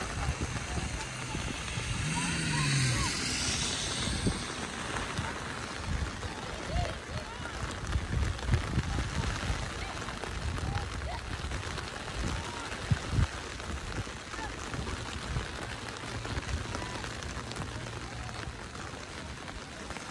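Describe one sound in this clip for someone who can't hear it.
Young players shout to each other far off across an open field.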